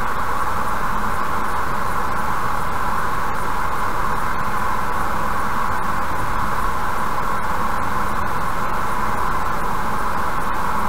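Tyres roar steadily on the road as a car drives at speed.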